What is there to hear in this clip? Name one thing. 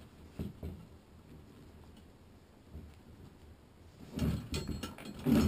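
Metal parts of a trap clink and rattle in a man's hands.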